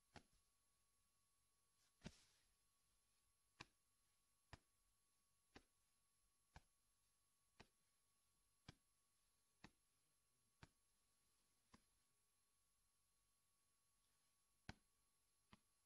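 Footsteps tap slowly and evenly on a hard floor.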